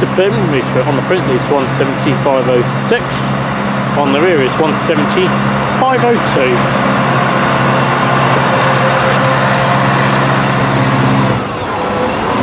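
A diesel train engine hums and throbs steadily close by.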